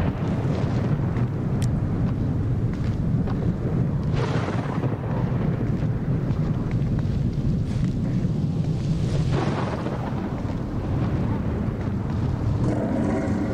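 Footsteps shuffle softly on pavement.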